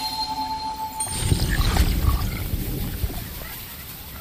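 A deep magical rumble swells and fades.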